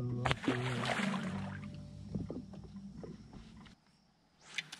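A boat engine hums steadily nearby.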